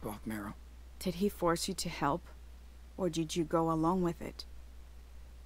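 A woman speaks calmly in reply.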